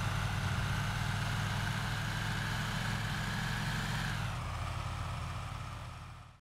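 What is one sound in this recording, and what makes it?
A truck engine drones steadily, then drops in pitch and fades out.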